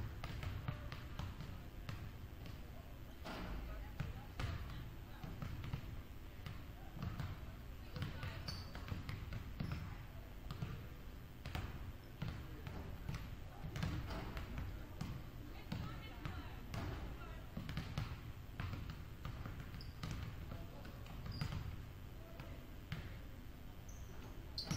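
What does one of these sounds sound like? Basketballs bounce on a wooden floor in a large echoing gym.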